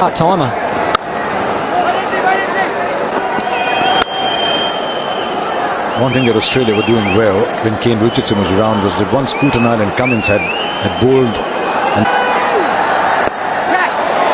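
A cricket bat cracks against a ball.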